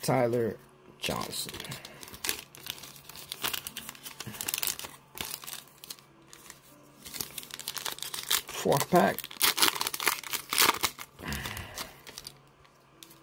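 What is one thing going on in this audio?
Plastic wrappers crinkle and rustle as they are handled.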